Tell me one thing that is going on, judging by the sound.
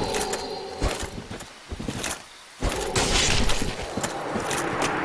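Heavy weapon blows land with sharp metallic clangs.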